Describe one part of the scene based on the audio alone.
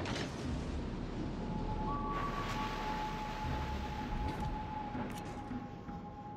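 Water rushes past a ship's hull.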